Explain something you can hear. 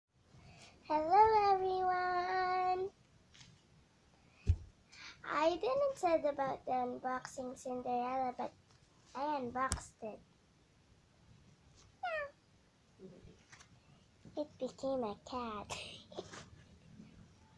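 A young girl talks and sings animatedly close by.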